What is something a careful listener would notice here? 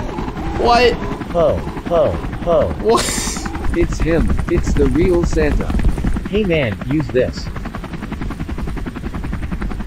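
A helicopter's rotor chops steadily.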